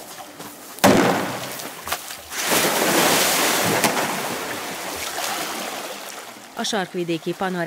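Water splashes and churns as an animal swims.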